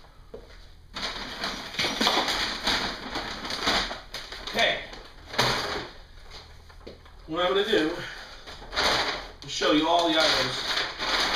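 Paper sacks rustle and crinkle as a man handles them.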